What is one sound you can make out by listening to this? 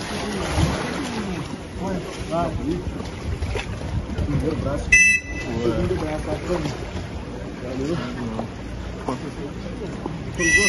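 Young men talk and call out to each other close by.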